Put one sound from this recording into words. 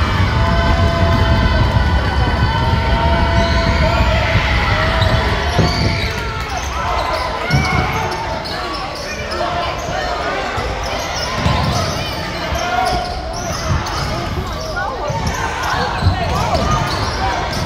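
Spectators shout and cheer in a large echoing gym.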